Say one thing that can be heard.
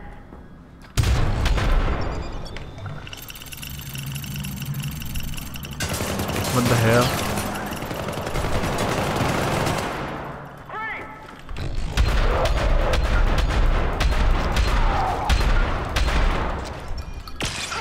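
Gunshots ring out in rapid bursts.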